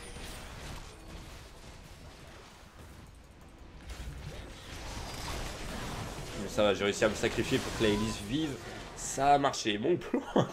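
Magic spells burst and whoosh in a video game.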